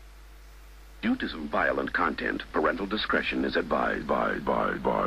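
A young man raps rapidly and forcefully.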